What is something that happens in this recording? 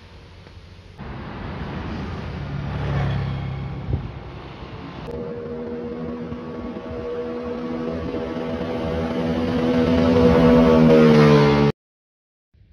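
A scooter engine hums as it rides past and rises in pitch.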